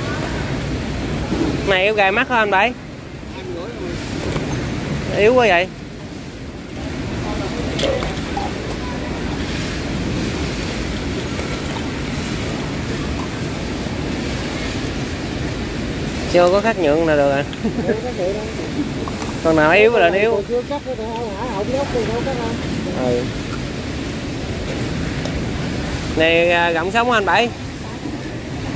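A busy market murmurs in the background.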